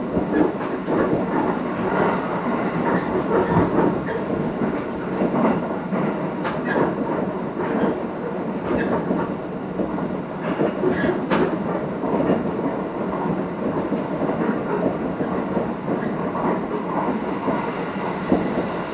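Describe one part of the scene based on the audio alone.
Train wheels clatter and rattle over rail joints.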